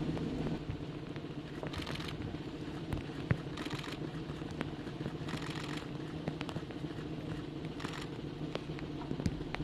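Rain patters steadily on umbrellas outdoors.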